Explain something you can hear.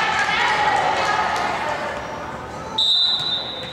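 Young girls call out and chatter in a large echoing gym.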